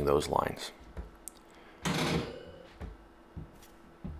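A wire shelf clanks against brackets.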